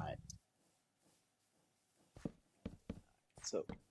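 Wooden blocks are set down with soft knocks.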